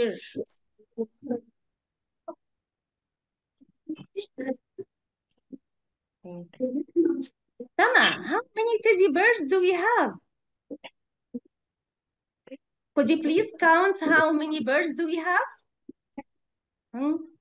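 A woman speaks calmly over an online call, in bursts with pauses.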